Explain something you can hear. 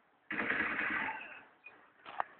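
Gunfire bursts out loudly.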